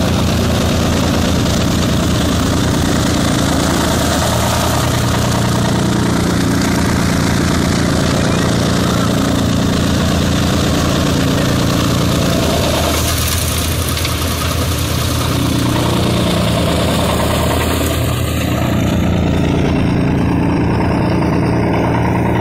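A straw chopping machine whirs loudly as it blows out chopped straw.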